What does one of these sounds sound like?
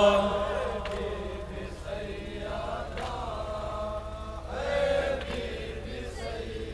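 A crowd of men chants together outdoors.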